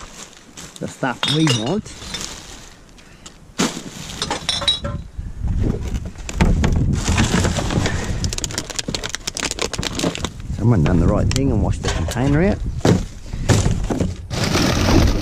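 Plastic bottles and cans clatter in a bin.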